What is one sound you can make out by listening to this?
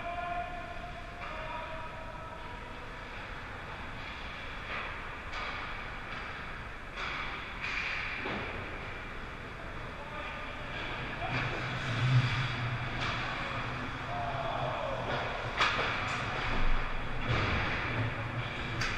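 Skate blades scrape and carve across the ice.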